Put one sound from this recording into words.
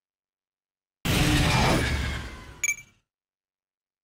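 An explosion booms and rumbles in a game, then fades.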